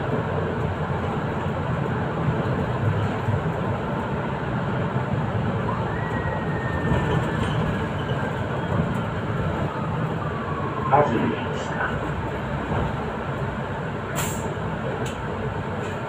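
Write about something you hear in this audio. Bus tyres rumble on the road, then quieten as the bus slows to a stop.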